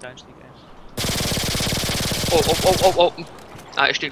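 Pistols fire a rapid burst of gunshots.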